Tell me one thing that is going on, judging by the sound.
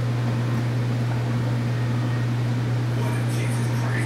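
Footsteps scuff on a concrete floor.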